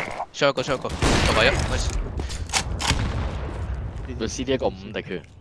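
Rifle shots crack in quick bursts.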